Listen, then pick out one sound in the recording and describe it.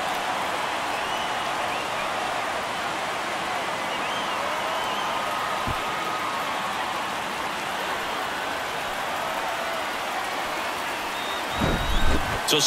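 A large crowd cheers and claps loudly in a stadium.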